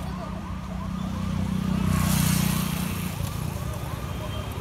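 A motorbike passes close by.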